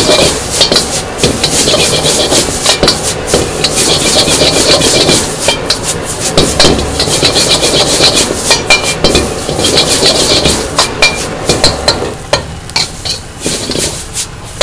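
Noodles sizzle and hiss in a hot wok.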